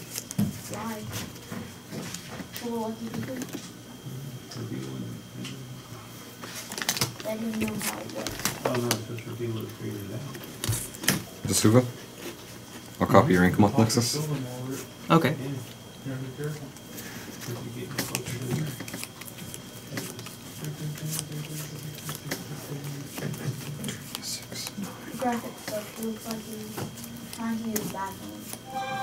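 Playing cards are shuffled in hands.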